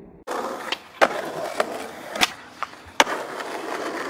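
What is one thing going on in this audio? A skateboard's tail snaps against the ground as a trick is popped.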